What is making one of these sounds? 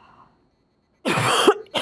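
A woman coughs.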